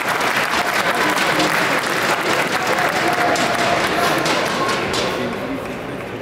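A large crowd cheers and applauds in an echoing hall, then fades.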